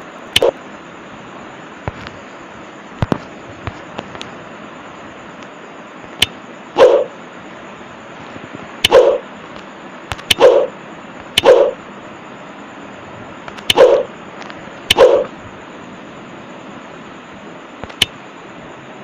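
Short electronic clicks and swishes sound as game menus open and close.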